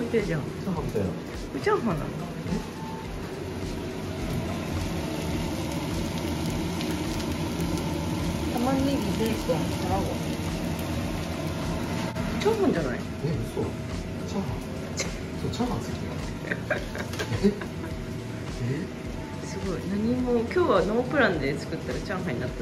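A young man speaks casually close by.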